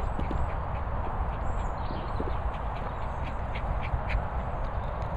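Wind blusters outdoors.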